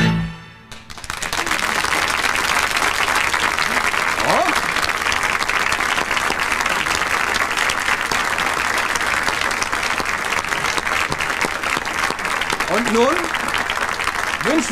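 A large audience applauds steadily and loudly in a big hall.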